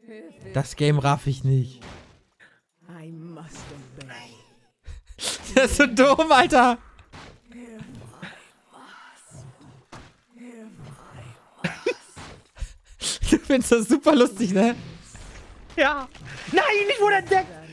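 A man laughs close to a microphone.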